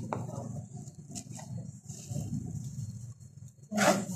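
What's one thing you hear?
Chopped herbs are scraped into a plastic bowl.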